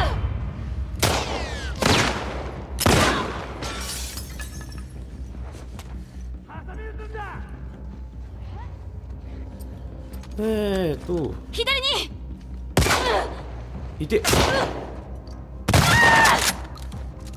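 Gunshots fire loudly, one after another, with a short echo.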